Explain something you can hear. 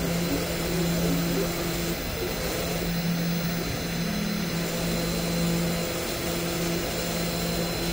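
A machine spindle whirs steadily.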